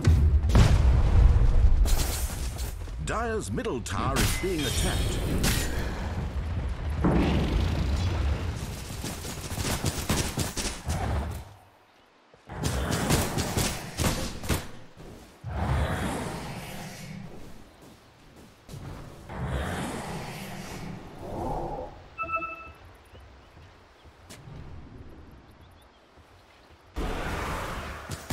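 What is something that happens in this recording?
Game weapons clash and hit in quick blows.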